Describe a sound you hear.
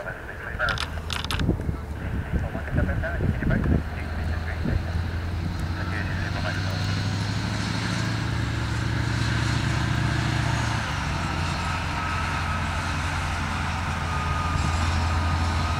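A large truck engine rumbles steadily as the vehicle drives slowly past.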